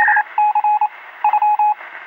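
Electronic synthesizer music plays with short, bright beeping tones.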